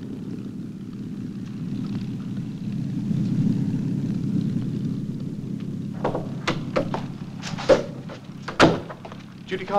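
A door opens and shuts.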